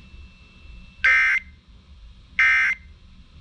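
A clock radio beeps twice.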